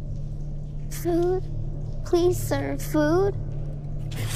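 A child speaks softly and anxiously, close by.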